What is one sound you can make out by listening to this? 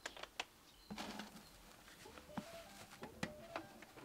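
Grain pours into a plastic bucket.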